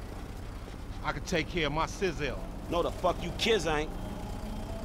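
A second man answers with animation from inside a van.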